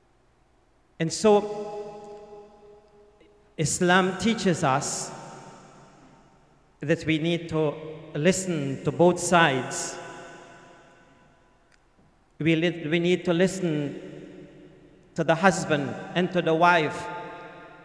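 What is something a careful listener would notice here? An elderly man speaks calmly through a microphone, in phrases with pauses, in a room with a noticeable echo.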